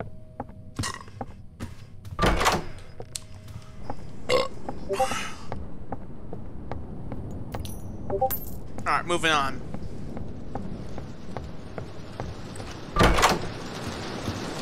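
Footsteps knock on a wooden floor.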